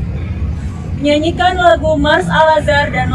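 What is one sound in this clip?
A young woman reads out into a microphone.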